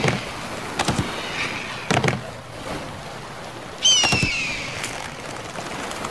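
A creature's jaws snap shut with a sharp clack.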